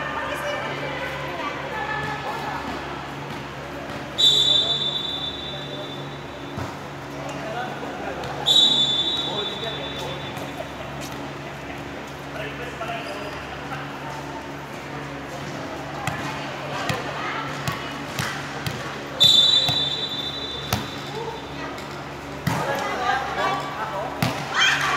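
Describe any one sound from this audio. Young women shout and call out to each other.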